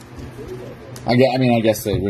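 Scissors snip open a foil pack.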